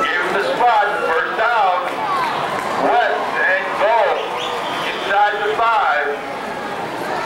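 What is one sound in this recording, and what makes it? Young women chant loudly together nearby.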